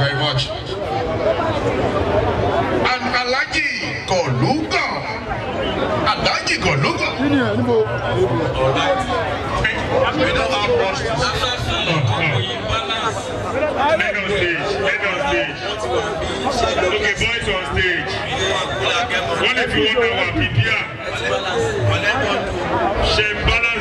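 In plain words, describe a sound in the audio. A large crowd chatters and cheers loudly all around.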